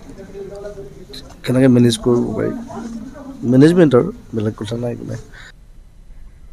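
A man speaks calmly into several microphones, close by.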